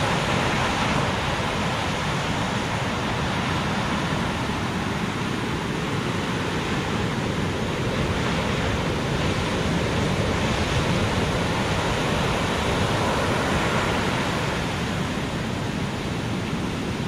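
Foamy surf hisses as it washes in.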